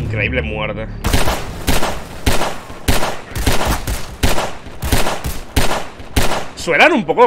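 Gunshots fire in a steady, rapid series with echoing cracks.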